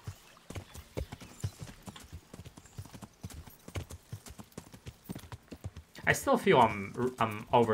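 A horse's hooves thud rapidly over the ground.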